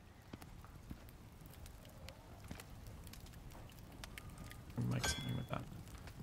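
A fire crackles and hisses.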